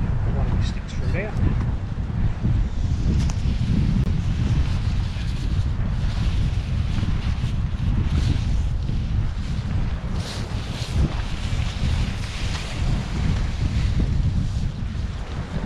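A fabric tarp rustles and flaps as it is pulled.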